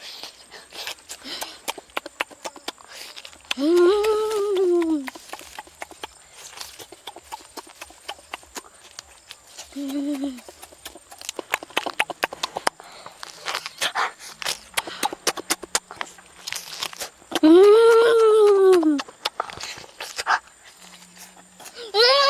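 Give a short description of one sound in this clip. A boy chews and crunches on crispy roasted meat close by.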